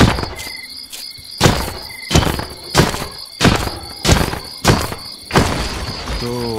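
A sword strikes a clanking iron creature in a video game.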